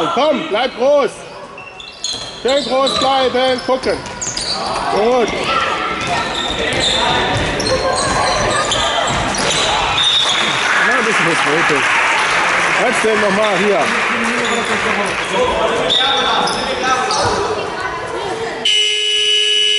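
Children shout and call out to each other across an echoing hall.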